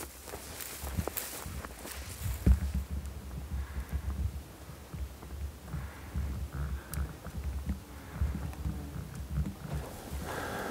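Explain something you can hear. Wind rumbles across an open hillside.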